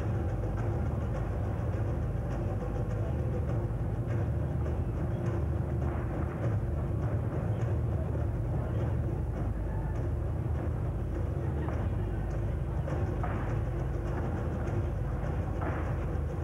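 Dancers' feet thud and stamp on a stage floor.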